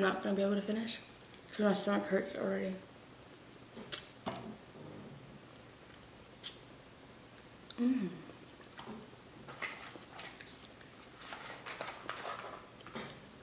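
A young woman crunches on a crispy snack.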